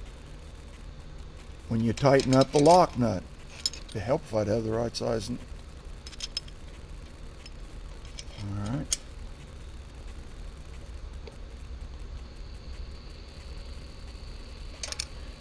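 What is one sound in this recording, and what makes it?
A metal wrench clicks against engine parts.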